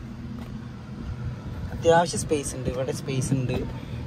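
A car's armrest lid clicks open.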